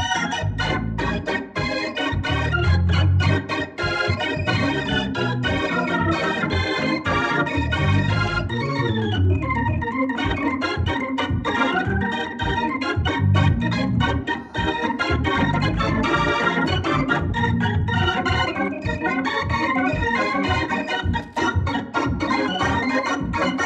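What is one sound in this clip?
An organ plays a lively tune with chords and quick runs.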